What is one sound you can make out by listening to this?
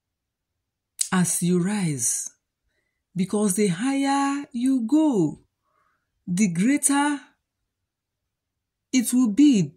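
A middle-aged woman speaks close to the microphone, calmly and expressively, in short phrases with pauses.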